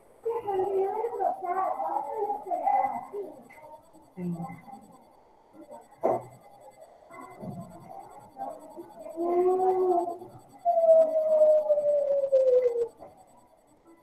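A woman speaks calmly through a computer microphone, as if on an online call.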